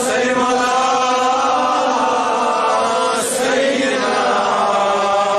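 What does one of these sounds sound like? An elderly man chants in a long, drawn-out voice.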